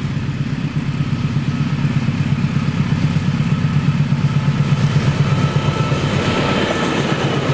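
Train wheels clatter rhythmically on the rails, coming closer.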